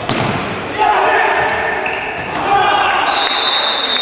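A futsal ball is kicked hard on an indoor court.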